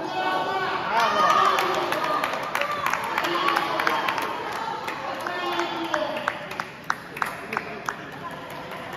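A ping-pong ball clicks back and forth off paddles and a table in a large echoing hall.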